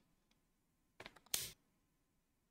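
A game piece clicks as it is placed on the board.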